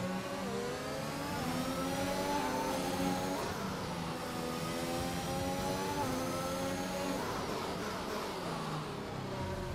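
A racing car engine screams at high revs, rising through the gears and dropping as it shifts down.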